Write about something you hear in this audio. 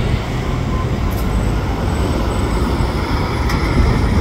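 A coach engine drones as it rolls past.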